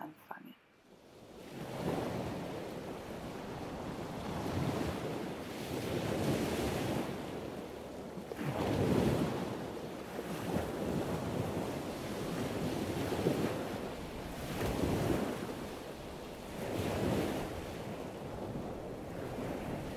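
Waves crash and surge against rocks in rolling swells.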